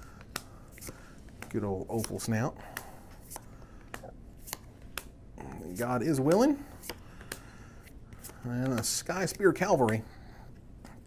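Playing cards rustle and click softly as they are handled.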